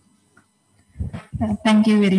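An older woman speaks with animation into a microphone.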